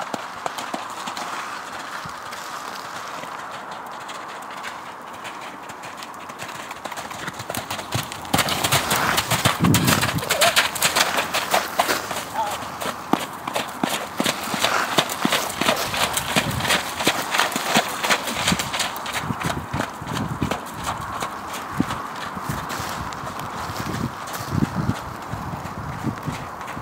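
A horse trots with rhythmic hoofbeats on wet, soft ground.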